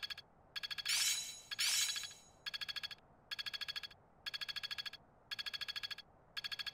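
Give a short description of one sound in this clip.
Rapid electronic ticks sound in short bursts as a game's numbers count up.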